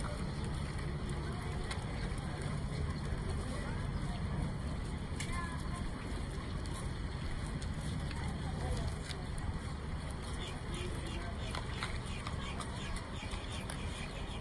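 A crowd chatters outdoors nearby.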